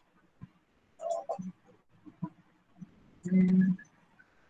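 A young woman speaks through an online call.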